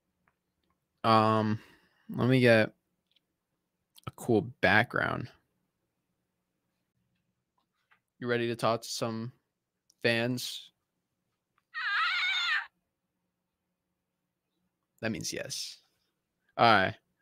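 A young man speaks with animation, close to a microphone, in short bursts with pauses.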